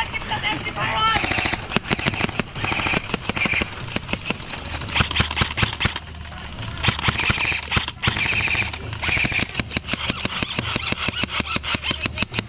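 A rifle fires rapid bursts of sharp shots close by.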